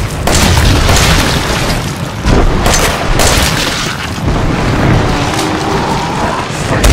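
A monster roars and growls close by.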